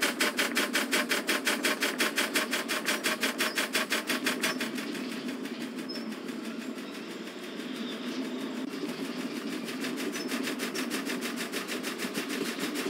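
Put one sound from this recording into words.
A steam locomotive chuffs rapidly and steadily.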